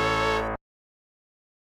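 Game music plays briefly and cuts off.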